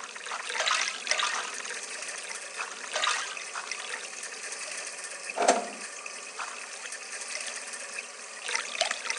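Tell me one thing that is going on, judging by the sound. Water splashes as fruit drops into a pot.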